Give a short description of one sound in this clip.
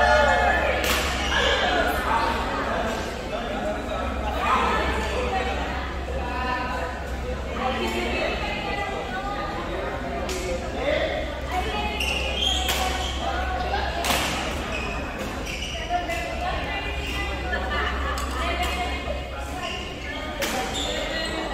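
Shuttlecock hits ring out sharply now and then.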